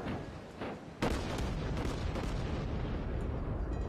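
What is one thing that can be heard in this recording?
Large naval guns fire with heavy booms.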